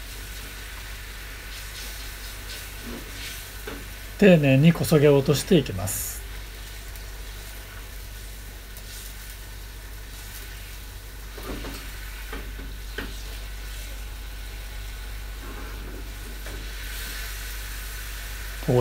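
Oil bubbles and sizzles softly in a pan.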